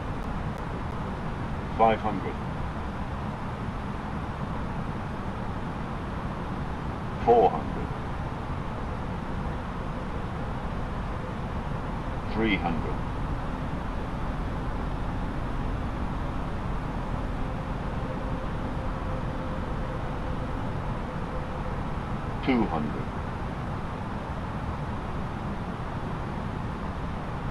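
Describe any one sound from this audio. Jet engines hum steadily with a low rumble of air rushing past the cockpit.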